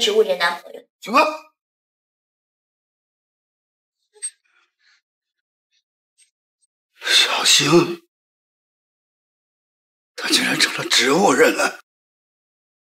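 A middle-aged man exclaims in surprise and speaks with distress, close by.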